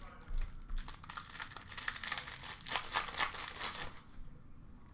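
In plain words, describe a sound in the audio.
Foil wrapping crinkles and tears open.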